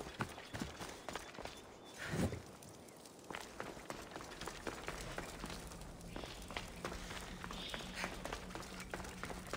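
Footsteps crunch on rocky ground.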